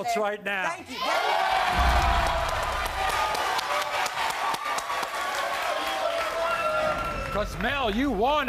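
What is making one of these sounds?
A studio audience cheers and screams loudly.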